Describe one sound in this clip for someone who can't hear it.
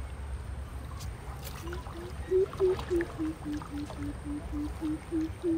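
Water laps gently against a small wooden boat.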